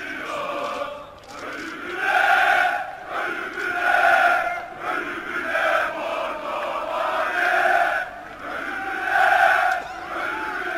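A crowd of fans chants loudly in rhythm across an open stadium.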